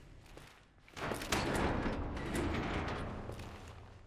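A metal gate creaks and rattles as it is pushed open.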